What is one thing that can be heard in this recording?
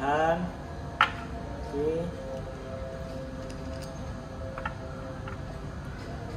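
Metal parts of a grinder click as they are handled.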